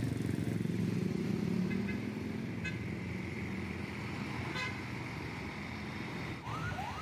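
A bus engine rumbles as the bus passes close by.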